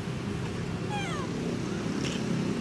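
A baby monkey squeaks briefly.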